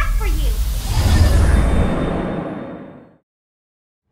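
A loud magical whoosh swells and fades into silence.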